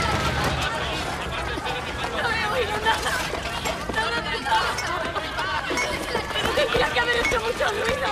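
A crowd of men and women shout and cry out nearby.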